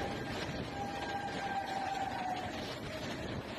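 Train wheels squeal with a high, drawn-out screech.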